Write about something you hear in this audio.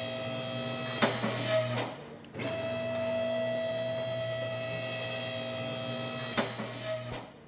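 A car lift clanks as it locks into place.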